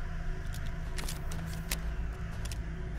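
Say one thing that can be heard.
A pistol magazine clicks out and back in.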